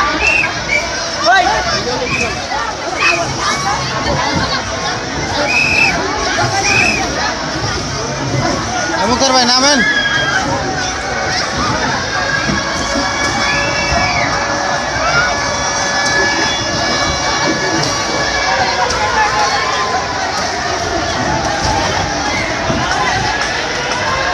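Water splashes as people slide into a pool.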